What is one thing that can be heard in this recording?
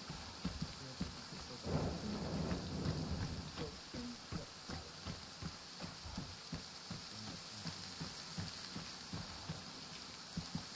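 Footsteps tread through grass at a steady walking pace.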